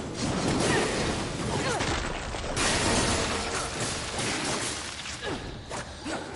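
A sword swings and clashes in a game fight.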